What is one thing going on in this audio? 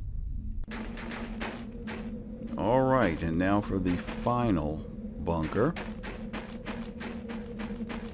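Boots crunch on rough ground.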